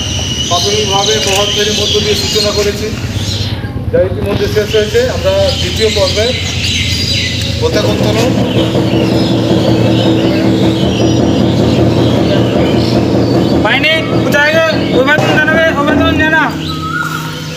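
A crowd of children sings together in chorus outdoors.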